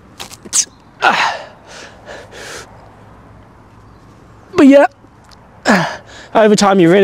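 A young man breathes out hard with effort, close by.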